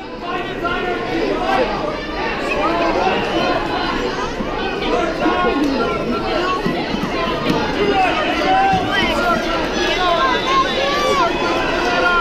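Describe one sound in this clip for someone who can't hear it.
A crowd of spectators shouts and cheers loudly in a large echoing hall.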